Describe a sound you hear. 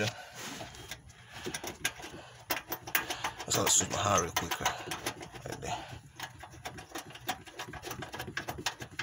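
A hand tool clicks and scrapes against sheet metal.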